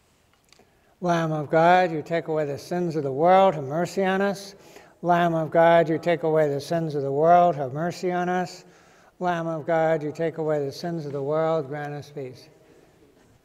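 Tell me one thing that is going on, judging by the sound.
An elderly man chants in a steady sung voice through a microphone.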